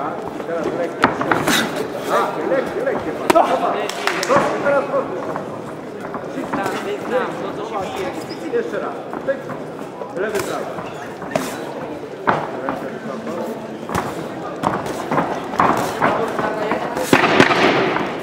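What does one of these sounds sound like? Punches thud against boxing gloves and bodies.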